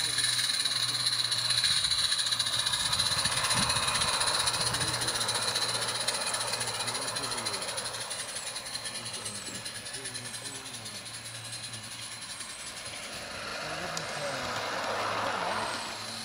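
A small steam engine chuffs and hisses close by.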